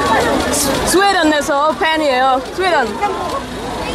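A young woman's high voice rings out briefly nearby.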